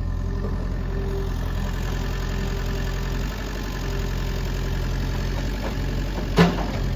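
A compact excavator's diesel engine idles.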